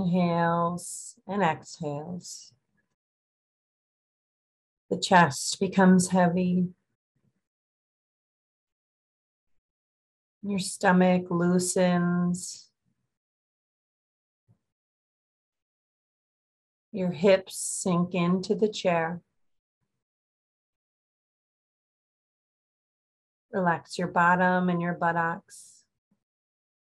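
A woman speaks slowly and calmly over an online call, with long pauses.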